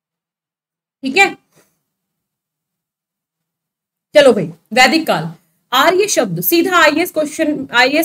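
A woman speaks clearly and calmly into a close microphone.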